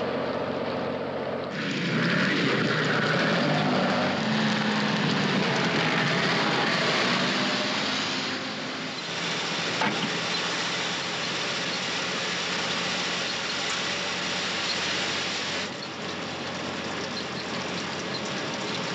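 A lorry engine hums steadily.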